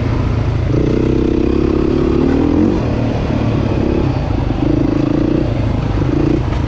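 A dirt bike engine revs loudly up close, rising and falling as the rider changes throttle.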